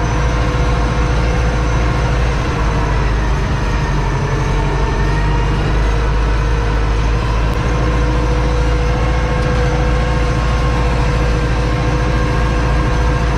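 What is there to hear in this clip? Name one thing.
A tractor cab rattles and vibrates over rough ground.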